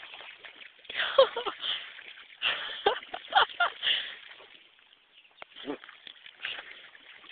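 Water splashes as an animal swims close by.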